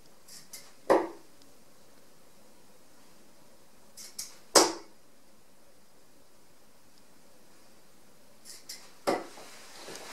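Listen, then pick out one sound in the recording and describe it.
Darts thud sharply into a dartboard.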